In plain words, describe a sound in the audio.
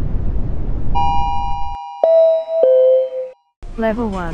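An elevator chime rings a few notes.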